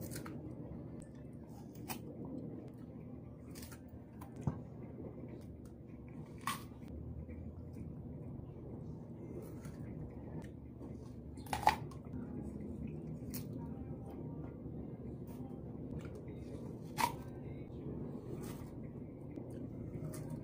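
A young woman bites and chews crisp fruit close to the microphone.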